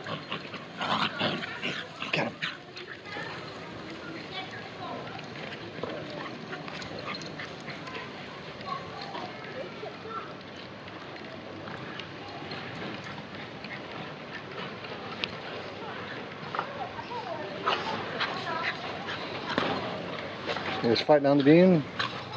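Small dogs scuffle and play on grass.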